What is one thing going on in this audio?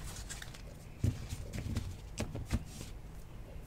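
A stack of cards is set down onto a table with a soft tap.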